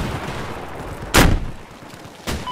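A rocket launcher fires with a loud blast.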